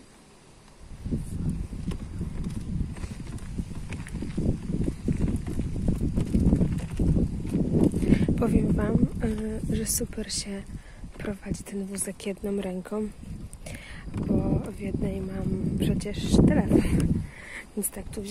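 Stroller wheels rumble over rough pavement.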